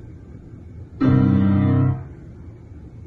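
A musical chord rings out briefly in a large hall.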